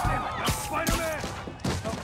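Webs shoot out with sharp thwips.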